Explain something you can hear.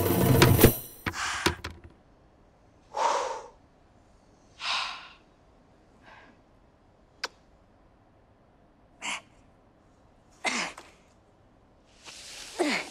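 A young woman gasps and pants heavily nearby.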